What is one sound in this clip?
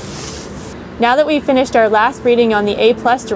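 A young woman speaks calmly and clearly, close to the microphone.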